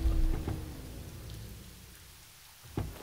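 A car engine rumbles and dies away.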